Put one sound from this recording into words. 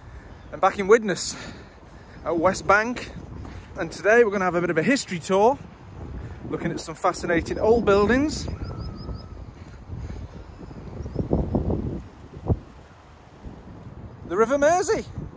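A man talks with animation, close to the microphone, outdoors.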